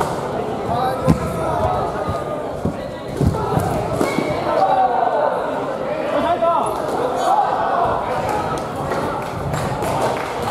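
Shoes thud and squeak on a hard floor.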